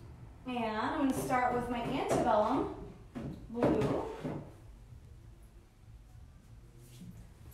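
A wooden drawer slides and knocks.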